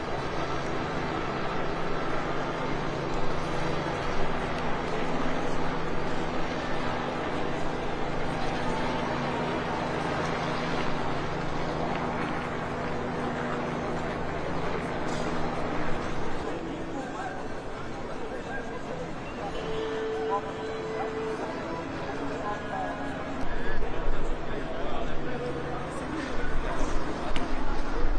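A crowd murmurs and talks quietly outdoors.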